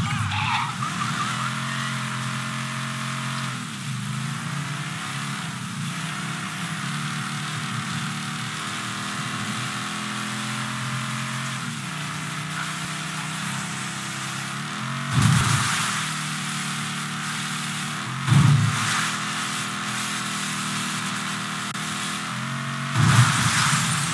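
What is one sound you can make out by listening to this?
A car engine roars steadily, revving up and dropping as the gears shift.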